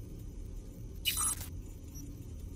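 A short electronic crackle sounds.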